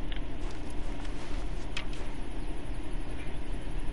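A bow creaks as an arrow is nocked and drawn.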